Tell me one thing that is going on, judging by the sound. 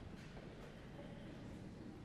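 Footsteps thud on a wooden stage in a large echoing hall.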